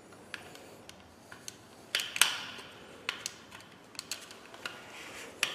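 Metal tweezers click and tap sharply close by.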